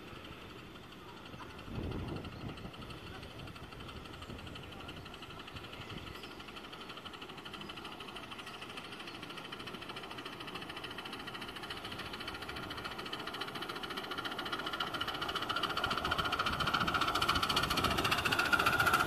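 A small steam locomotive chuffs rapidly as it approaches and grows louder.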